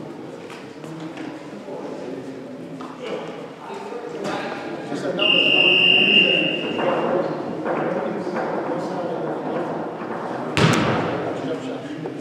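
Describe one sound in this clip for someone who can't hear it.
Young men call out to each other in an echoing hall.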